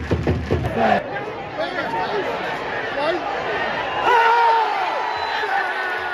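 A crowd shouts and cheers from the stands of a stadium.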